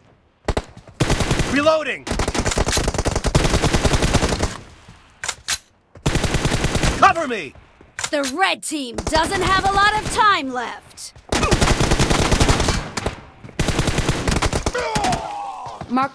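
Rapid bursts of automatic rifle fire ring out loudly.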